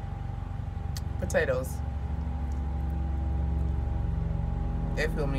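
A woman chews food close to a microphone.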